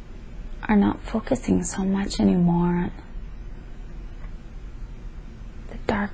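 A young woman speaks drowsily and slowly, close by.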